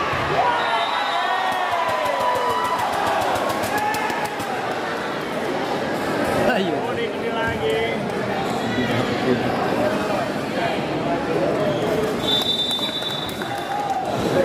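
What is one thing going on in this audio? Shoe soles squeak sharply on a hard court.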